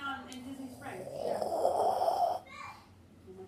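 A young boy gags and retches.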